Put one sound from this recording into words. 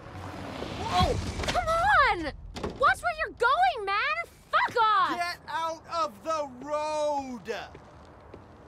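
A young man shouts with alarm close by.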